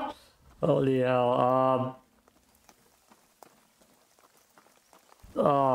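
A young man speaks loudly with drawn-out, sing-song calls into a close microphone.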